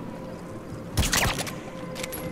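A silenced gunshot pops sharply.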